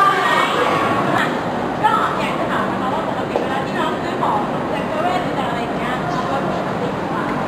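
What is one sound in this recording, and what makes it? A young woman speaks calmly to a group nearby.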